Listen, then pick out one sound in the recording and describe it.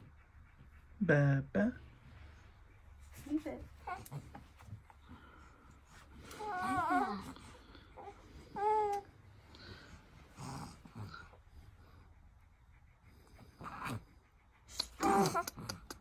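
A young woman speaks to a baby close by in a high, sing-song voice.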